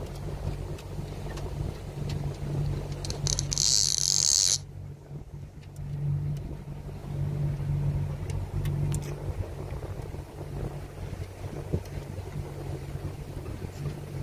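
An electric boat motor hums steadily.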